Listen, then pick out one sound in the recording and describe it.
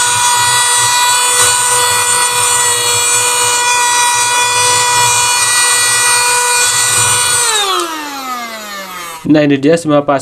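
A small handheld vacuum cleaner whirs with a steady high whine, then winds down and stops.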